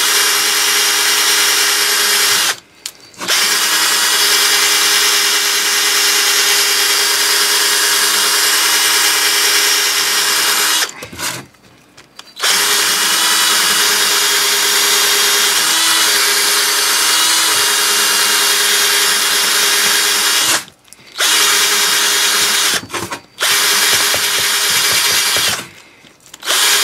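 A cordless drill spins a wire brush that scrubs noisily against metal, stopping briefly now and then.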